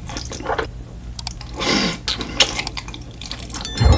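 A person slurps noodles close to a microphone.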